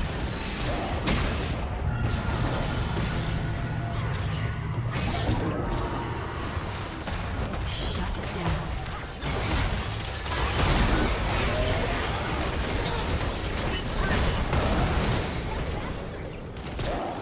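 Spell blasts and impacts crackle and boom in a game battle.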